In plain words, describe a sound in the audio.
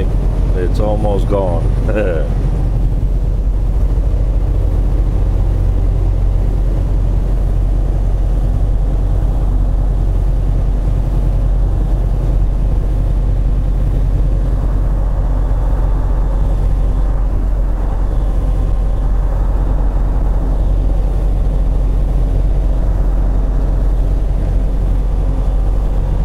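Tyres roll on a snowy road.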